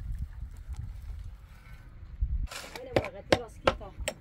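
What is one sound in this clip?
A shovel scrapes and digs into dry earth.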